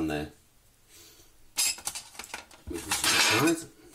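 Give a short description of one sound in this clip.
A metal cake ring clinks and scrapes against a glass board.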